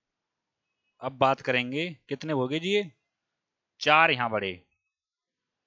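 A man speaks clearly into a headset microphone, in short bursts.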